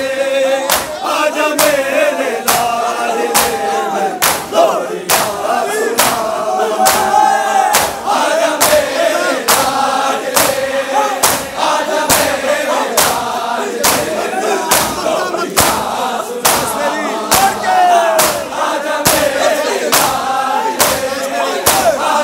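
A crowd of men chants together loudly.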